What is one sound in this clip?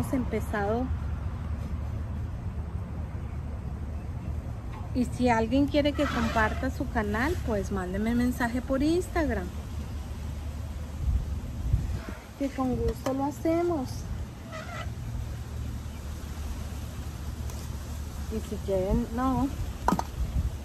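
A woman speaks calmly close by, outdoors.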